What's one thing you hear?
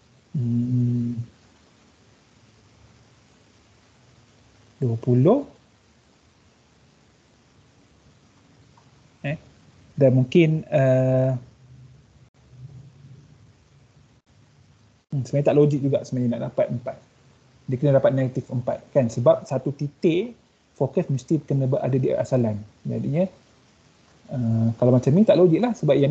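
A young man speaks calmly in bursts through an online call.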